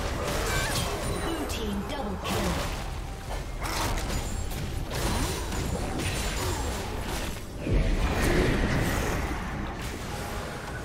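Game spell effects crackle and burst in quick succession.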